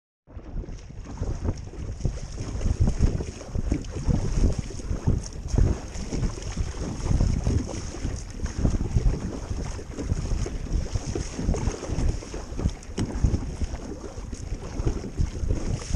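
A paddle splashes rhythmically through choppy water.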